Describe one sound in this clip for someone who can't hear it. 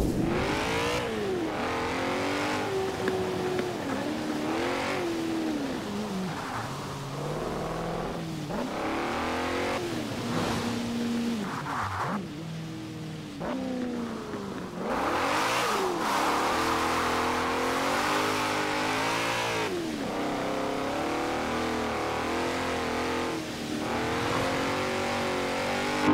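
A car engine revs hard, rising and falling in pitch as gears shift.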